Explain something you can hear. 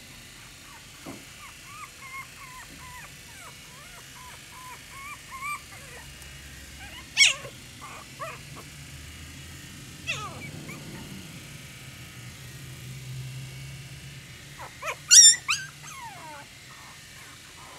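Puppies whimper and squeak in high, thin cries.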